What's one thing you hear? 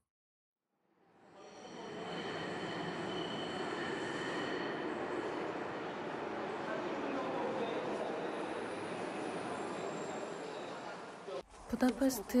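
A subway train rumbles into an echoing station.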